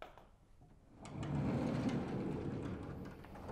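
A large sliding board rumbles as it is pushed up.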